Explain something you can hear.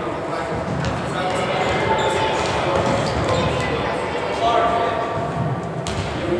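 Sneakers squeak on a hardwood court in an echoing gym.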